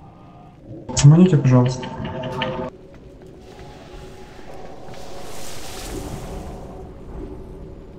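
Magical spell effects whoosh and shimmer.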